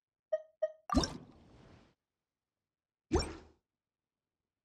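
A bright magical whoosh sweeps up and sparkles.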